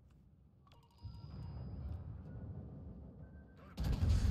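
Heavy guns boom and rumble.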